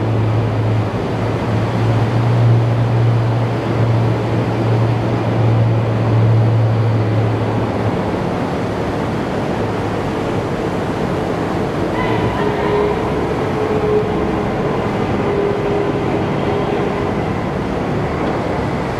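The diesel engine of an amphibious assault vehicle drones as it swims.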